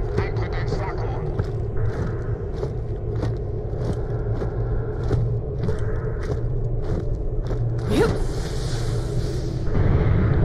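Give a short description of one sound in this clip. Footsteps crunch steadily on rocky ground.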